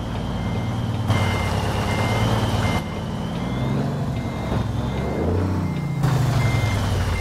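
A reversing alarm beeps at an even pace.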